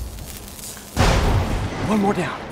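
A loud electric zap crackles suddenly.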